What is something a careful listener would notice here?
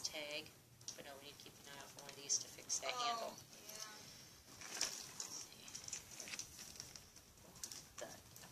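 A leather bag rustles as hands handle it.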